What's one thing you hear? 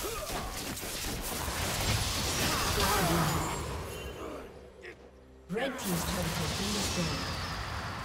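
Magic spells whoosh and crackle in a fast game fight.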